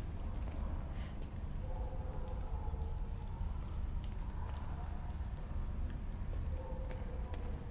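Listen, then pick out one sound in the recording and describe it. Footsteps crunch slowly on debris-strewn concrete.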